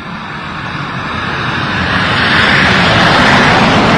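A jet plane roars loudly overhead.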